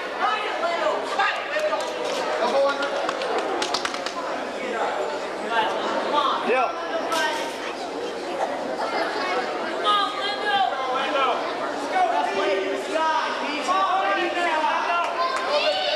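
A crowd of young men and women shouts and cheers in an echoing hall.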